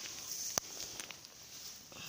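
Dry grass rustles as a hand brushes through it.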